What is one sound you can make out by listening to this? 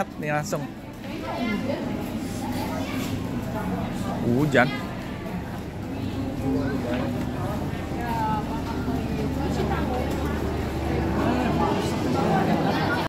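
A crowd of people chatter nearby in a large echoing indoor space.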